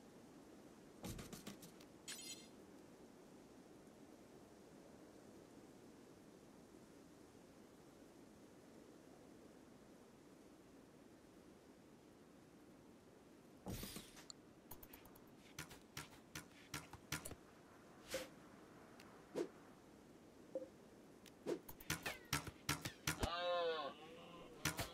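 Short electronic clicks and blips sound from a game interface.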